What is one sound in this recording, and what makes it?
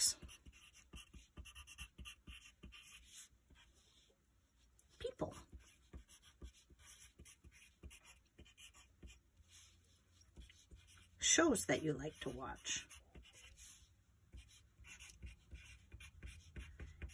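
A pencil scratches and taps on paper, close up.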